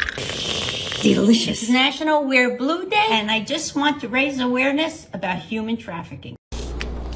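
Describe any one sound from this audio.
An elderly woman speaks with animation, close by.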